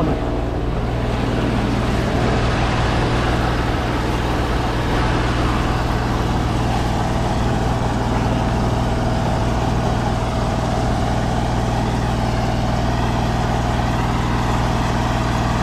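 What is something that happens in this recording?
A drain cleaning cable whirs steadily as it feeds into a manhole.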